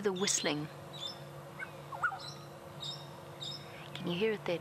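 A parrot chirps softly.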